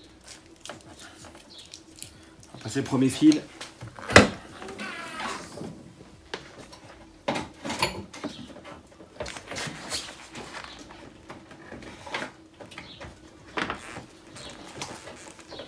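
Wires rustle and click as they are handled close by.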